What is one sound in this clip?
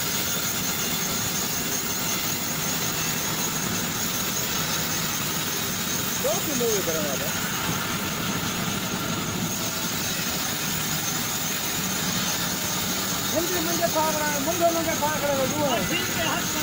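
A band saw whines steadily as it cuts through a log.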